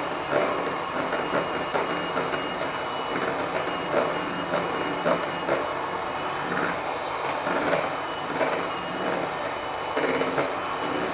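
Dishes clink and knock together as they are washed.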